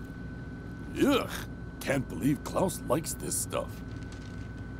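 A man grumbles and exclaims angrily, close by.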